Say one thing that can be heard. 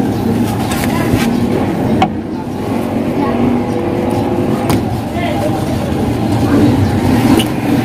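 Metal tools clink and scrape against engine parts.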